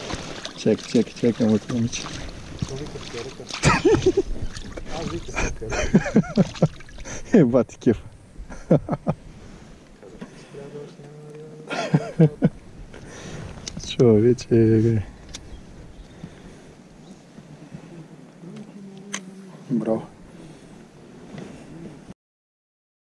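A shallow stream gurgles close by.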